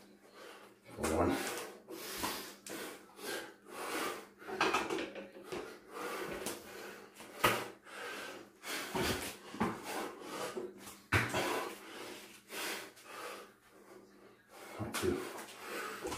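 Bare feet thump on a floor mat during jumps.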